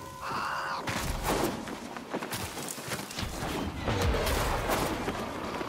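Quick footsteps thud and scrape across dry ground.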